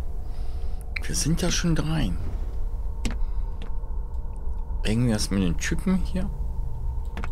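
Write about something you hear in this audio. A woman speaks into a microphone close by.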